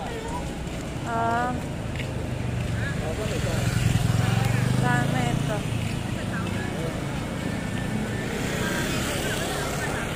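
Traffic engines rumble low and steady along a street.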